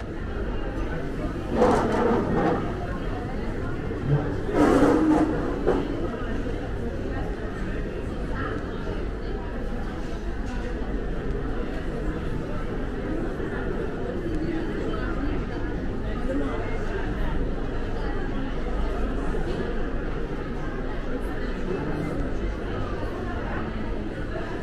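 A crowd of people chatters steadily in a large echoing hall.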